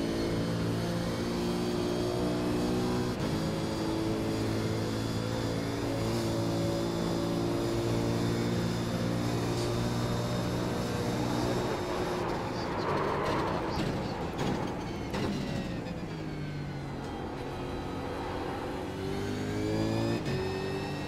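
A racing car engine roars at high revs, shifting gears up and down.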